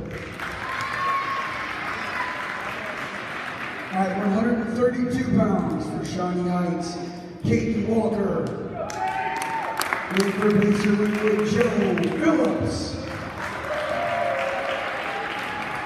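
A crowd cheers and murmurs in a large hall.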